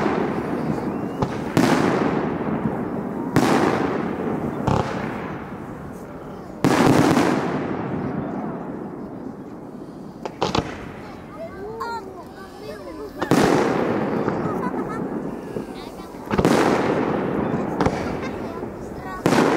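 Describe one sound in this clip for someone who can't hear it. Fireworks burst with loud booms that rumble and echo away.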